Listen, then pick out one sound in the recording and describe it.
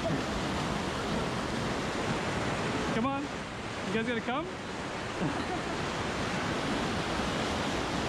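Water rushes and churns loudly down a rocky chute.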